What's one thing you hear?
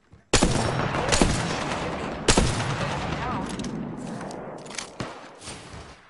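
Loud gunshots boom and ring out.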